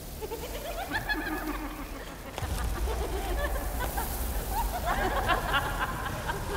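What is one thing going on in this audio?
A swarm of insects buzzes and flutters.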